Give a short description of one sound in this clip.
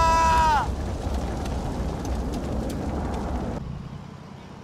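Wind rushes loudly.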